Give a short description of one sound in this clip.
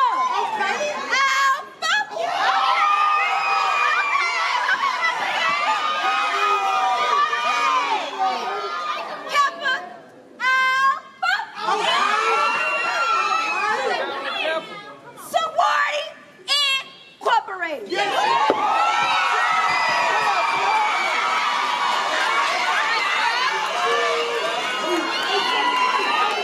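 Several young women chant together in a loud group.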